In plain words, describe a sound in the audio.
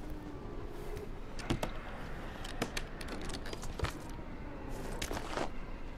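Hands thump and scrape against ledges while climbing.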